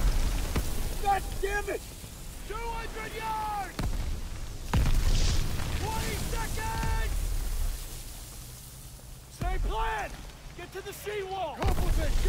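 Men shout urgently close by.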